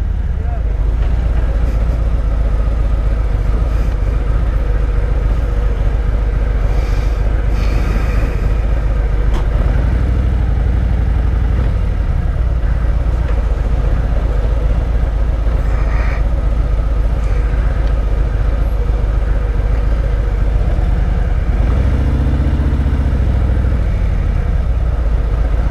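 A motorcycle engine idles with a deep, steady rumble.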